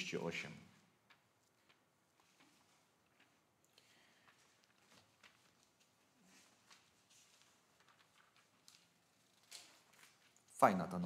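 Book pages rustle as they turn.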